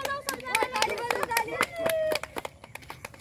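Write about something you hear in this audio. Young girls sing and chant together nearby, outdoors.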